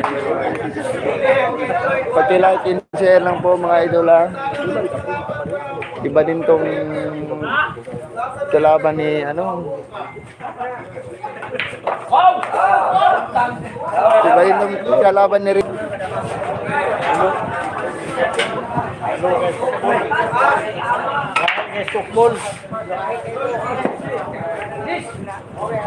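Billiard balls knock together with sharp clicks.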